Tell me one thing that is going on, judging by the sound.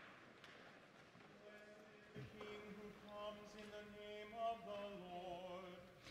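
A choir sings in a large, echoing hall.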